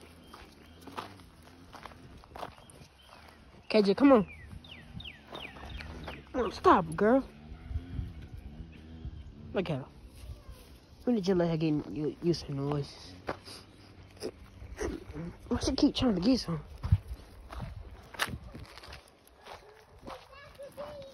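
Footsteps crunch on gritty ground.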